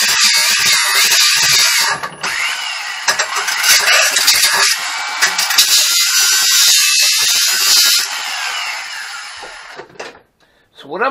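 An angle grinder screams as it cuts into metal.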